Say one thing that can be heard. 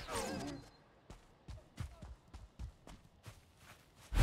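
Footsteps thud softly on a forest floor.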